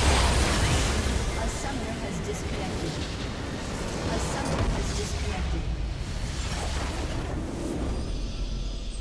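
Loud blasts, crashes and magical whooshes of a fierce fight ring out in quick succession.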